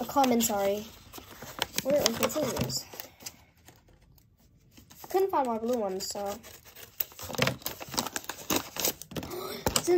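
Hands rustle and crinkle a paper packet.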